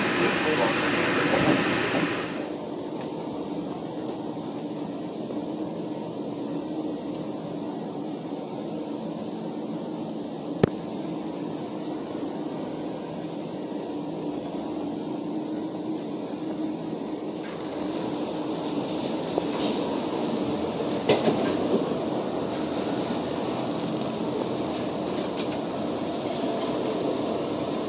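A low steady hum fills a large echoing hall.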